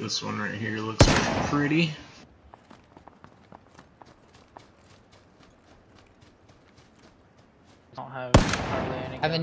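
A pistol fires loud single shots.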